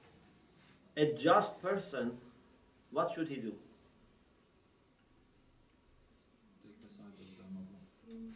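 A man speaks calmly in short phrases nearby.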